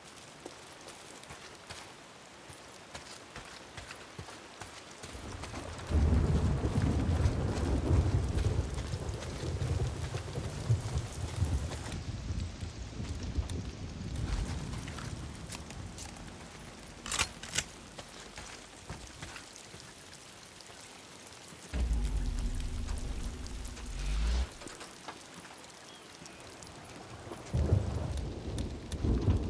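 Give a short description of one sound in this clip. Footsteps run through grass and over dirt.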